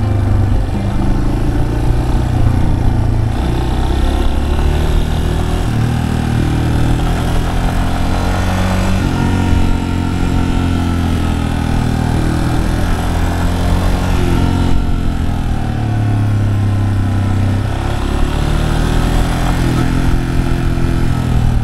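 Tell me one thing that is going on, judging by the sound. A motorcycle engine hums and revs up and down as it rides along.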